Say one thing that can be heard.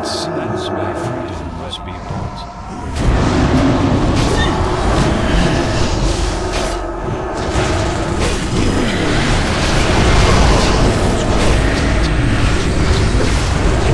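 Spell effects crackle and burst during a game battle.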